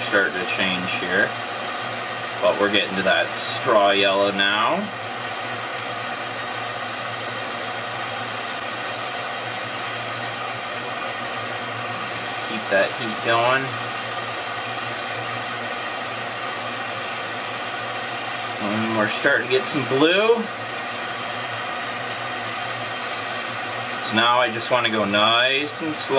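A blowtorch flame hisses steadily.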